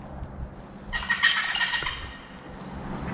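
A wild turkey gobbles loudly nearby.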